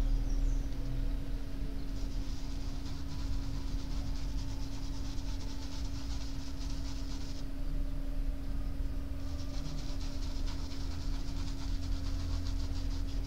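A brush strokes softly across canvas.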